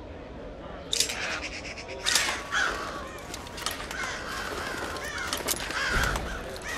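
Small metal clicks sound as a lock is picked.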